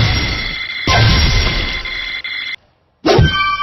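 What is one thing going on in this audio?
A cheerful victory jingle plays with sparkling chimes.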